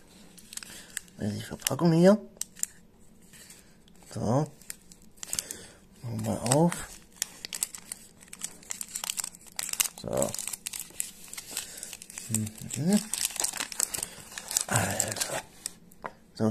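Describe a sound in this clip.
A foil candy wrapper crinkles and rustles as it is unwrapped.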